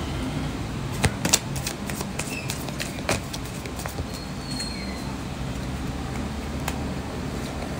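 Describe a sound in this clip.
Playing cards riffle and snap as they are shuffled close by.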